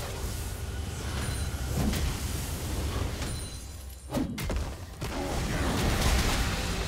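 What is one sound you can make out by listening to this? Sword and magic hits clash sharply.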